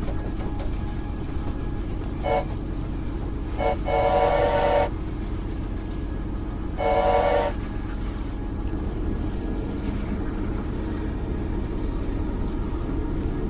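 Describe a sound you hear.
A steam locomotive rumbles and chugs steadily along.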